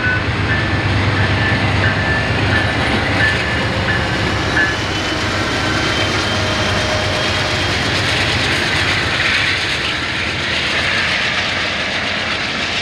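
A diesel locomotive rumbles loudly past, close by.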